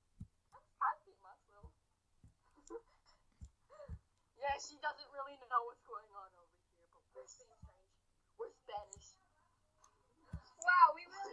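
Two young women talk and react with animation over an online call.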